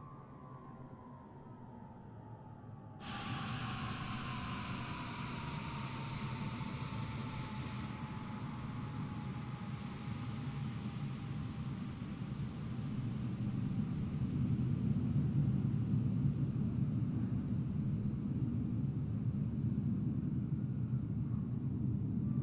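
A jet engine hums and whines steadily, its whine slowly falling in pitch.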